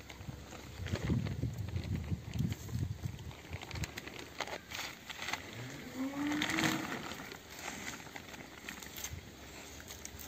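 Dry leaves rustle and crackle close by.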